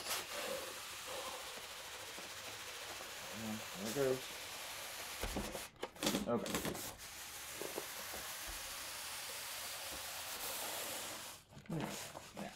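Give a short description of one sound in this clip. Cardboard slides and scrapes as a box is pulled off.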